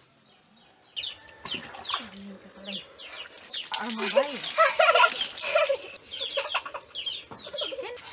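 Water pours and splashes over a person's head.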